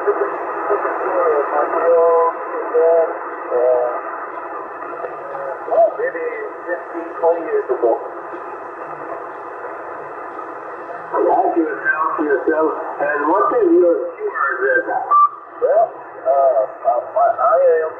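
A man talks over a crackly radio loudspeaker.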